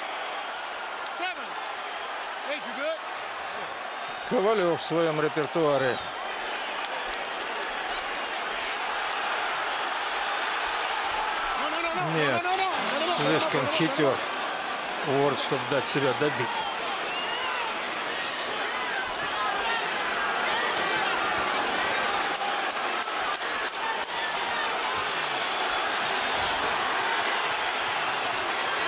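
A crowd cheers and roars loudly in a large arena.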